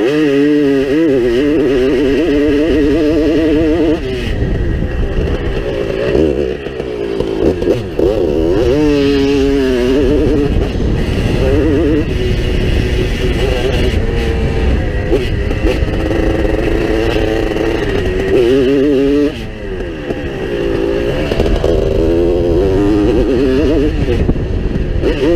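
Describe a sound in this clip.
A motorcycle engine revs hard, rising and falling in pitch as it is ridden close by.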